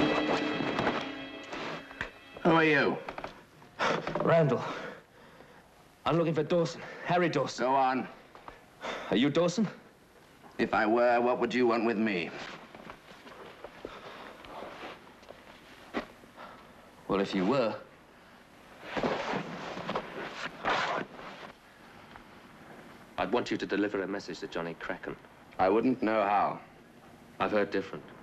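A young man speaks roughly and threateningly close by.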